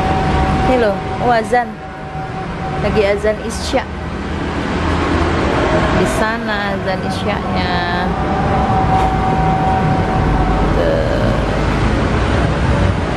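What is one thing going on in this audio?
Traffic hums steadily in the street below, outdoors.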